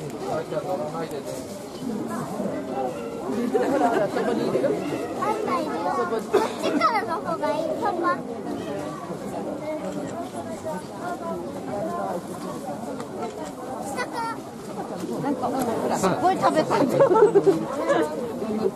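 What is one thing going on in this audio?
A panda crunches and chews bamboo stalks.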